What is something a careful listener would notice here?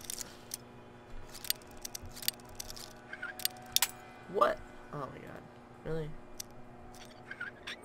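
A lock pick scrapes and clicks inside a metal lock.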